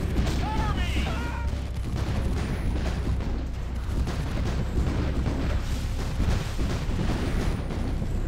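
Rapid gunfire and cannon blasts rattle and boom continuously.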